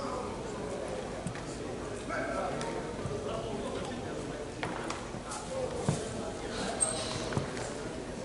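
Men talk at a distance in a large echoing hall.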